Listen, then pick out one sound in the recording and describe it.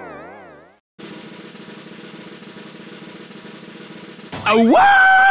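A harp is strummed in a quick, steady ripple.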